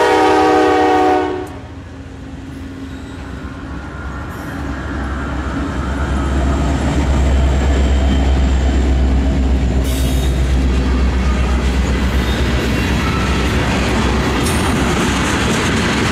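Train wheels rumble and clatter along the rails.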